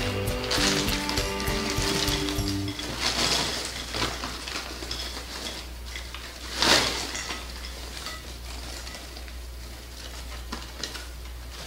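Popcorn spills and patters onto a glass plate.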